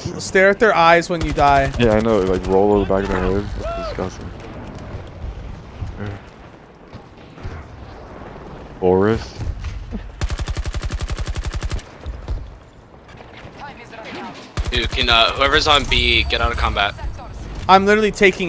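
An automatic rifle fires in rapid bursts, close by.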